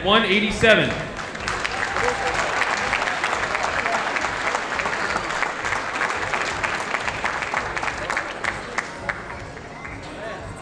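An audience cheers and applauds.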